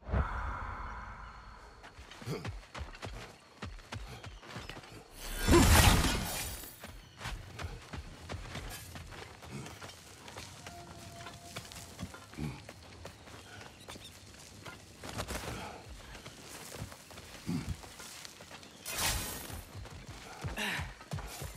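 Heavy footsteps crunch on stone.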